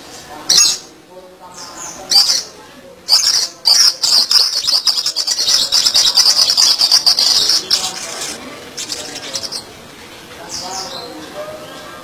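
A caged bird sings loud, shrill trills and chirps close by.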